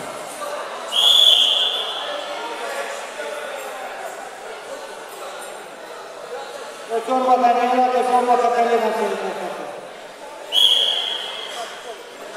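A referee blows a whistle sharply.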